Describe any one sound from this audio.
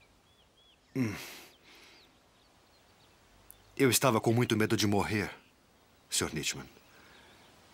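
A man speaks nearby with animation, outdoors.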